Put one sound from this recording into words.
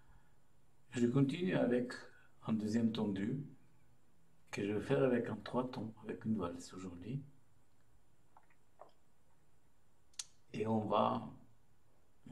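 A middle-aged man speaks calmly and close by, in short phrases.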